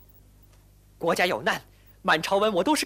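A young woman speaks sharply and angrily close by.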